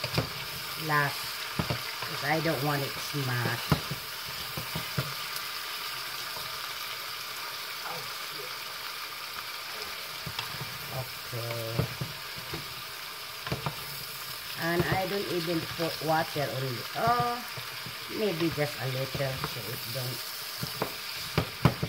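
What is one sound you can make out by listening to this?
A wooden spoon stirs and scrapes vegetables in a pot.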